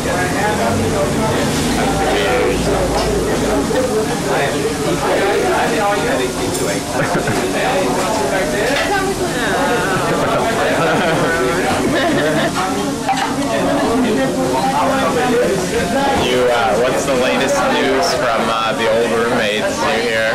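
Many people chatter in a busy room.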